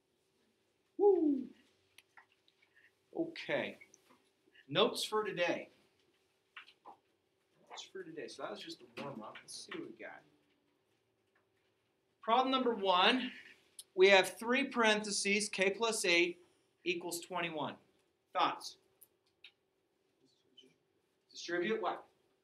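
A man speaks calmly nearby, explaining.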